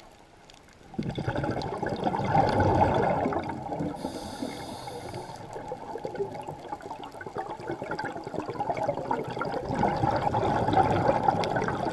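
A scuba diver breathes out through a regulator, releasing gurgling bursts of bubbles underwater.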